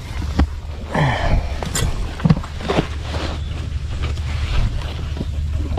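A plastic sheet rustles and crinkles as it is handled.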